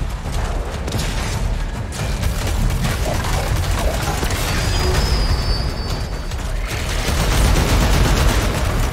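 Explosions burst with a loud electric crackle.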